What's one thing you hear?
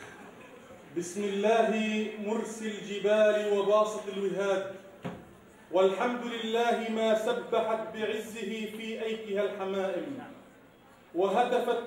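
A man speaks through a microphone into a large hall, in a steady chanting voice.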